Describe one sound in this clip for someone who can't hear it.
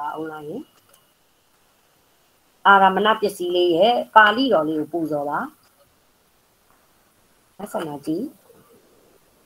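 A woman speaks calmly through an online call, in short bursts.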